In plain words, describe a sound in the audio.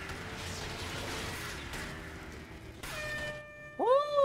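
Tyres kick up gravel and dust.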